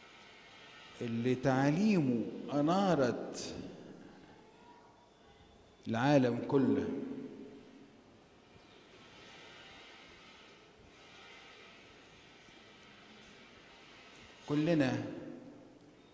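An elderly man speaks calmly into a microphone in short bursts, with pauses.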